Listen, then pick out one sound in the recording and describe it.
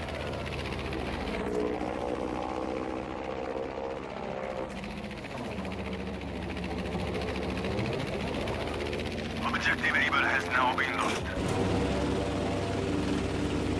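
A propeller plane's engine drones steadily, rising and falling in pitch.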